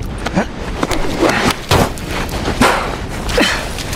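A man grunts as he climbs a wall.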